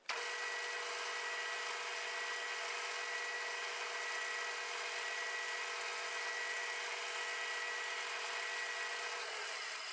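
A lathe motor runs with a steady high whine.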